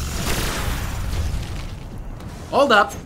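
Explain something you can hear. A gun fires rapidly.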